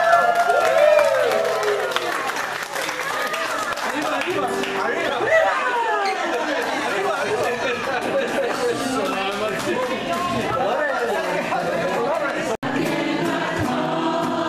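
A crowd of adults sings together in a room.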